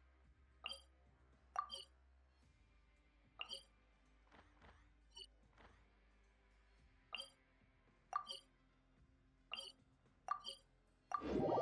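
Soft menu chimes click now and then.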